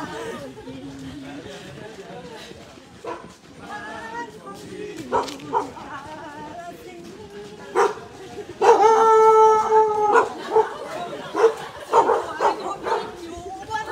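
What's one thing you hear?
Many feet jog in rhythm on pavement.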